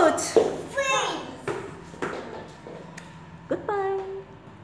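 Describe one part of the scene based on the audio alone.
Small feet stomp on a hard floor.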